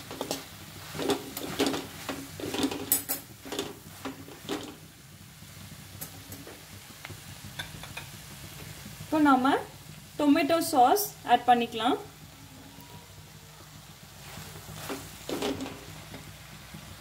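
A metal spatula scrapes and clinks against a wok.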